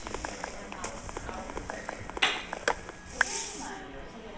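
Blocks crack and break with short crunching taps.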